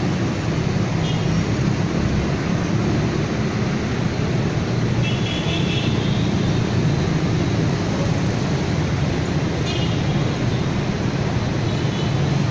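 Dense city traffic rumbles steadily with many motorbikes and cars passing.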